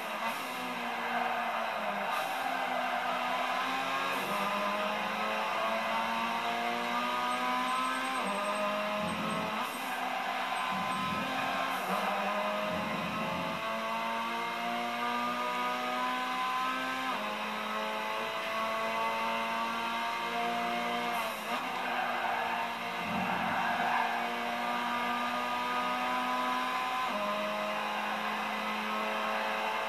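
A racing car engine revs high, rising through each gear and dropping at every shift.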